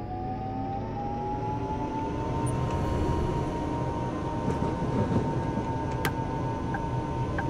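Tram wheels rumble and rattle over the rails.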